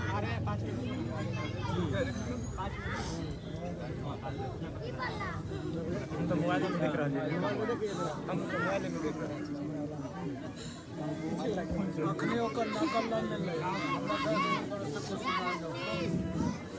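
A woman wails and cries loudly nearby.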